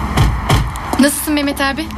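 A young girl laughs brightly nearby.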